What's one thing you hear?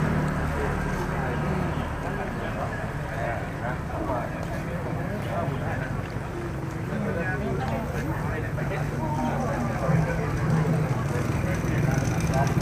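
Several men and women chat nearby outdoors.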